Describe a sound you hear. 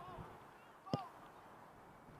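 A player kicks a soccer ball with a thud.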